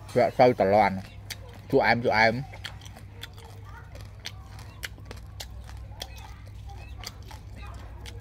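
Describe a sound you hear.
Crisp fried insects crackle as fingers pick through them.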